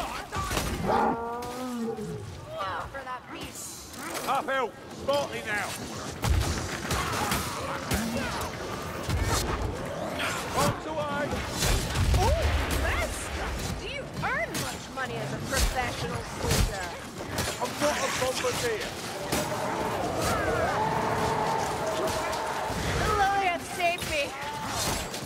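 Creatures snarl and shriek close by.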